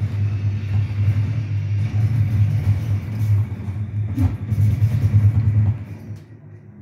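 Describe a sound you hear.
Gunfire from a video game crackles through a television speaker.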